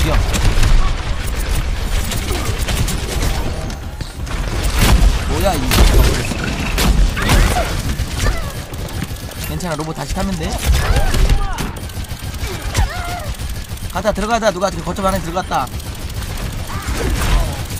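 Game gunfire rattles in quick bursts.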